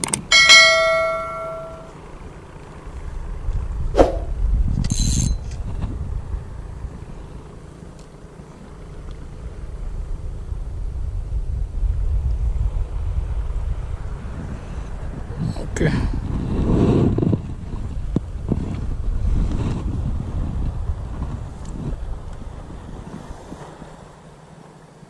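Wind buffets loudly against the microphone outdoors.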